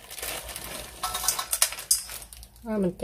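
Crushed peanuts patter and rattle onto a plate.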